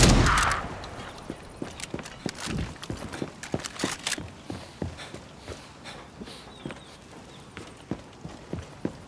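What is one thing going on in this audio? Footsteps crunch and tap on hard ground.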